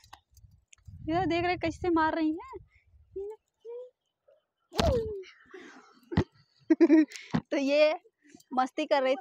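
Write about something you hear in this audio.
A young woman speaks close by with animation, in a sing-song voice.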